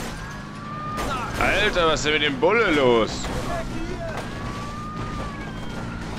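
A car smashes through a wooden fence with cracking and thuds.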